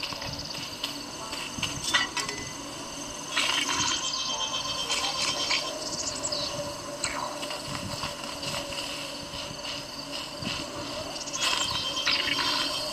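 Sword clashes and hits from a video game play through a small phone speaker.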